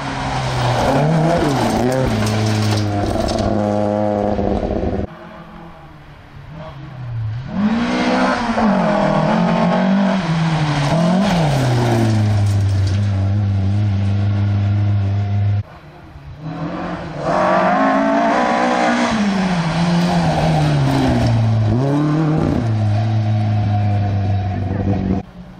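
Rally car engines roar and rev hard as cars speed past one after another.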